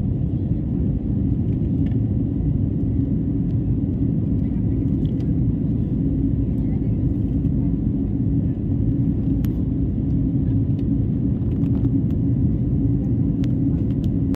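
Jet engines roar steadily from inside an airliner cabin.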